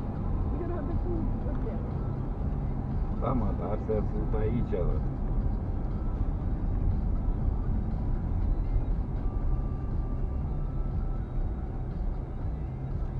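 A car engine hums steadily with road rumble from inside the car.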